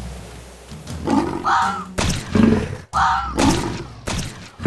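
A big cat growls as it attacks.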